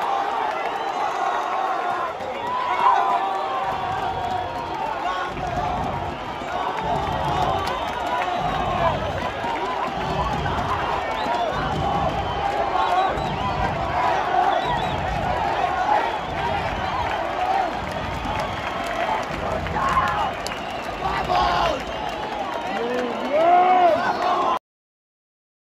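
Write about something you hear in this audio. A large stadium crowd cheers and chants loudly outdoors.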